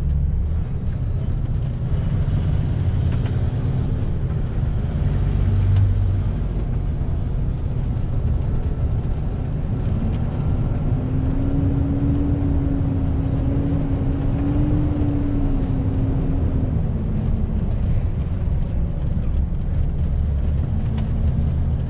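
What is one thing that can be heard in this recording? Tyres roll on the road with a steady hum.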